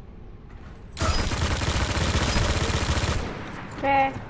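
A heavy machine gun fires in a rapid, loud burst.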